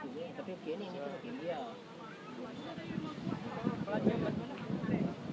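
Young adults chat excitedly close by, outdoors.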